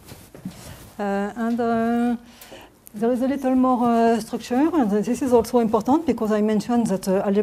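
A woman speaks steadily and clearly, lecturing to a room.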